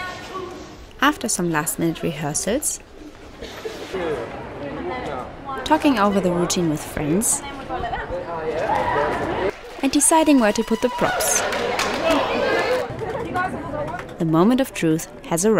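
A crowd chatters and cheers.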